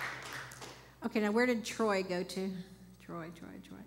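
A middle-aged woman speaks calmly through a microphone in a hall.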